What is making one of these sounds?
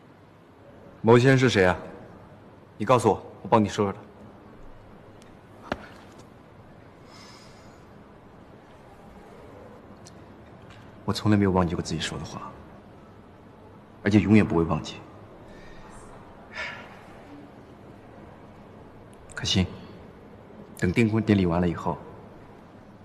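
A young man speaks calmly and close by, in short phrases with pauses.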